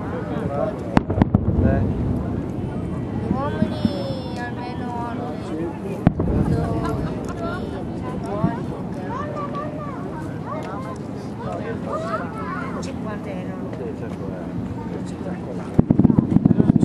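Fireworks boom in the distance.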